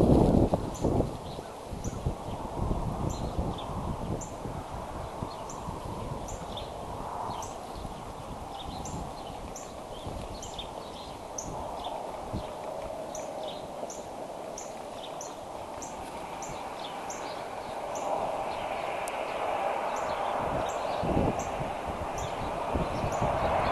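Twigs and dry grass rustle softly as a large bird shifts on its nest.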